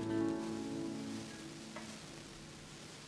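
An acoustic guitar strums a chord that rings out and fades.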